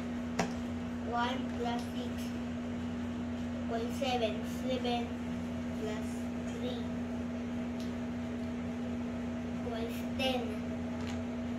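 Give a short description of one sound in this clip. A young boy speaks softly nearby.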